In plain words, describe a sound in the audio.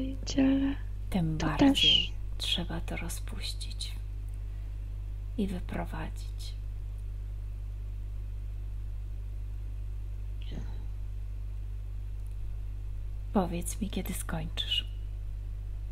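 A woman speaks with animation through a headset microphone over an online call.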